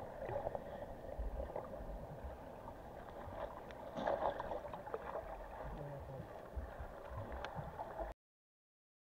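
Water gurgles and rushes around an underwater microphone, with small ticks and clicks.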